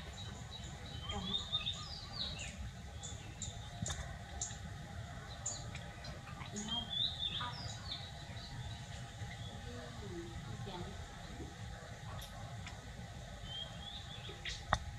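Baby monkeys squeak in high, short chirps close by.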